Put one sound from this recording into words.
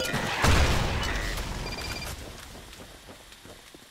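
A weapon is drawn with a short metallic click.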